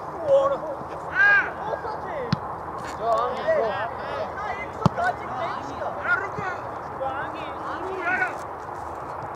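Young men shout to each other from a distance across an open field.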